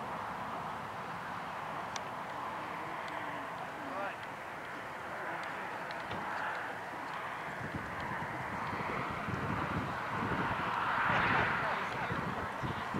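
A horse trots on soft sand with rhythmic muffled hoof thuds.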